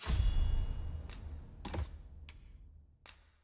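Short menu chimes sound as options are picked.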